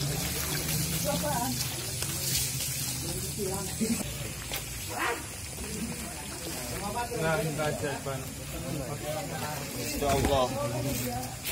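Men talk outdoors at night, close by.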